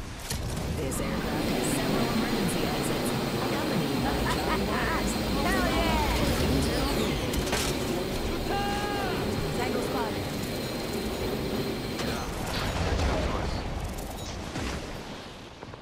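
Wind rushes past loudly during a fast glide, then dies away.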